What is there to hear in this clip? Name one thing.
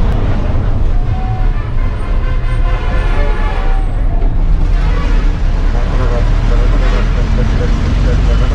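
Vehicle horns honk nearby.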